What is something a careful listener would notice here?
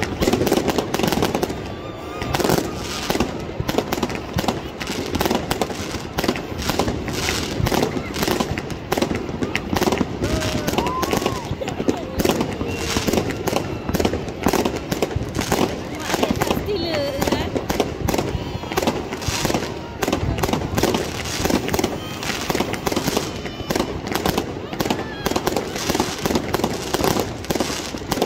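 Fireworks bang and crackle rapidly overhead, outdoors.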